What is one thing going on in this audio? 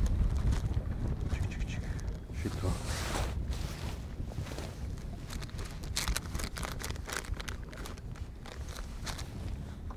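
Plastic packets rustle and crinkle as they are sorted.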